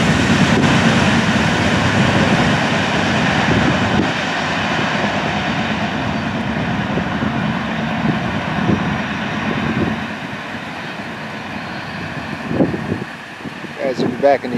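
Freight train cars rumble and clatter along the rails, slowly fading into the distance.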